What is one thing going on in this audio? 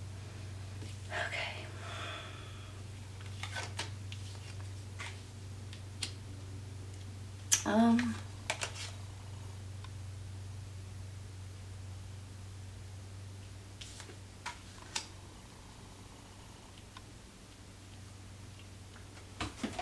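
Cards slide and tap softly on a table.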